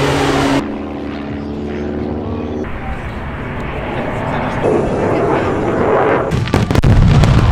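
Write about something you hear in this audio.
A jet engine roars overhead.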